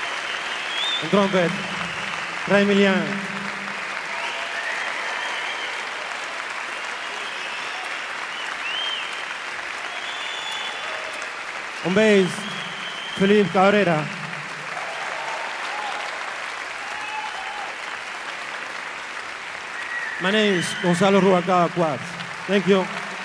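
A man speaks through a microphone and loudspeakers over the crowd.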